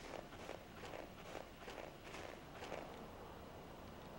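Footsteps crunch through snow at an even pace.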